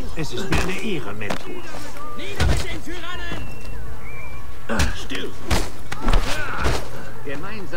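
Bare-fisted punches thud against bodies in a brawl.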